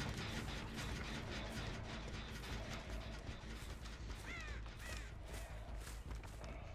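Heavy footsteps tread steadily through grass and dirt.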